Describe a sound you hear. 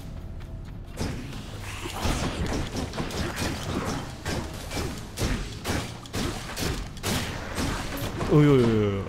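A sword slashes and strikes in quick bursts.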